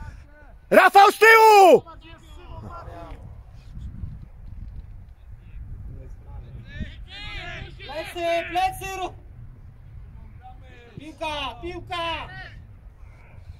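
Young men shout to each other across an open playing field.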